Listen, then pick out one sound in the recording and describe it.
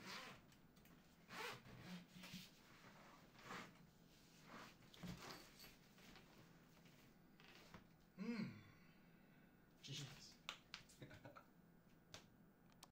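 Hands rustle and tap against a padded case.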